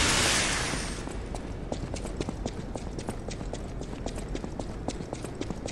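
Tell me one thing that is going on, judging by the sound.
Footsteps tap quickly on a hard stone floor.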